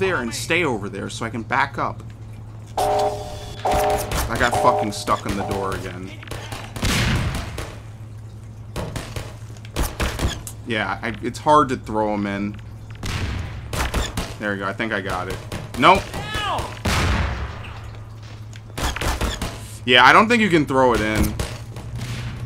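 Gunshots ring out in rapid bursts, echoing in a hard room.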